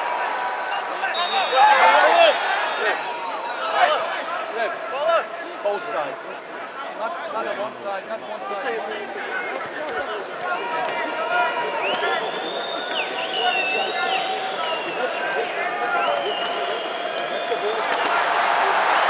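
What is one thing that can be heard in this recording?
A man shouts instructions nearby.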